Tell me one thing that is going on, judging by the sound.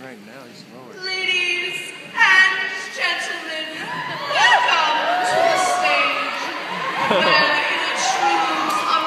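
A young woman speaks with animation through a loudspeaker.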